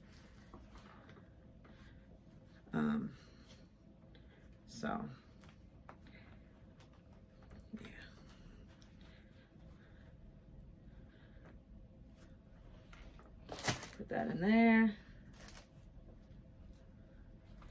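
Paper rustles as a box is unpacked.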